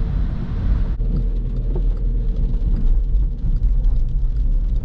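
Tyres swish over a wet road.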